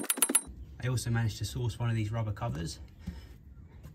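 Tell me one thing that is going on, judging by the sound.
A rubber mount knocks against metal.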